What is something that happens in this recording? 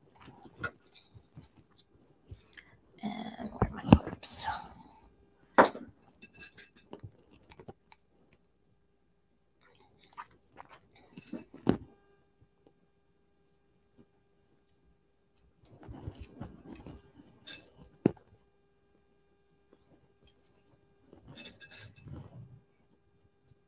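Fabric rustles as hands handle and fold it.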